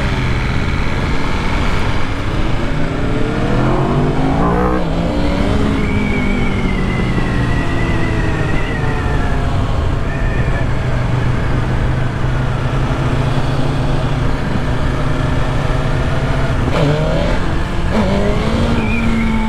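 A motorcycle engine hums and rises and falls in pitch as the rider shifts gears.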